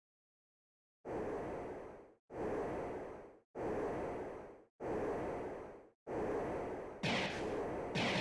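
Large wings beat with slow, steady whooshes.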